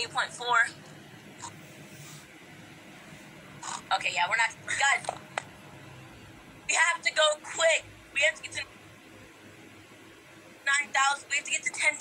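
A boy talks with animation close to a phone microphone.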